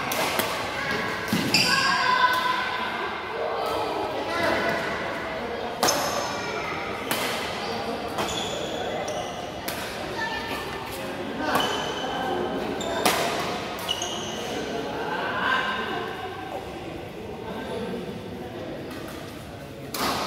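Shuttlecocks pop sharply off rackets in a large echoing hall.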